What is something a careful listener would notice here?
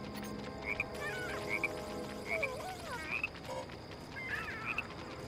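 Short electronic beeps chirp in pairs, a few times.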